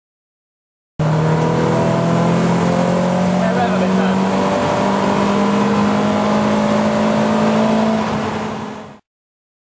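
A car engine drones as the car drives along a road.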